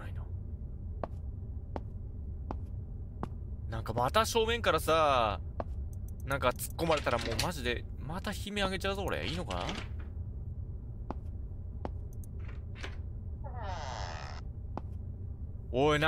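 Footsteps tap slowly on a hard tiled floor in an echoing corridor.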